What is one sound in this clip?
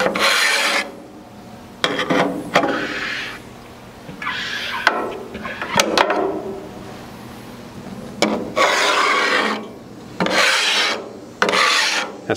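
A metal scraper scrapes across a wet steel griddle in short strokes.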